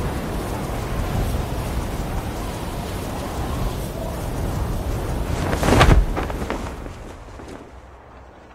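Wind rushes loudly and then fades away.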